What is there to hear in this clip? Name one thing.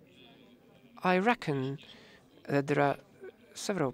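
A middle-aged man speaks into a microphone, pausing between phrases.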